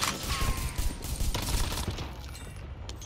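Gunfire crackles loudly.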